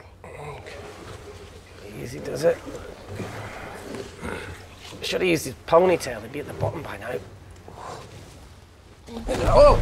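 A young woman speaks calmly and closely.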